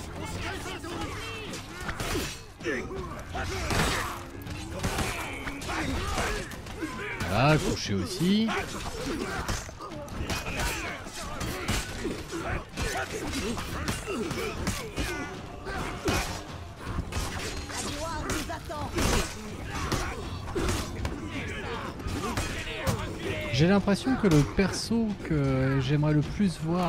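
Weapons clash and strike in a chaotic battle.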